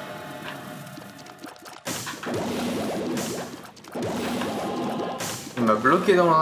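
Video game sound effects burst and swell.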